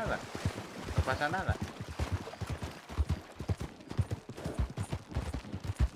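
A horse's hooves clop steadily over loose stones.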